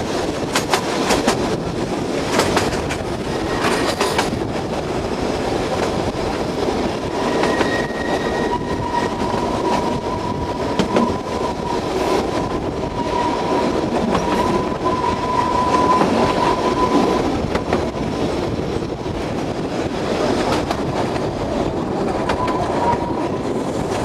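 A train rumbles and rattles steadily along the track.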